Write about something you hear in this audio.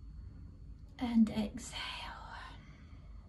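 A middle-aged woman speaks softly and calmly, close by.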